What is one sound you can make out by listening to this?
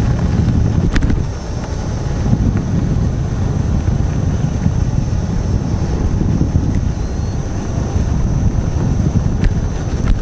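A wheel rolls and crunches over loose dirt.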